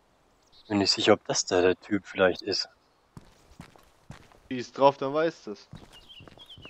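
Footsteps tap on a hard concrete floor.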